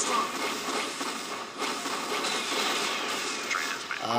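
Game gunfire rattles in bursts.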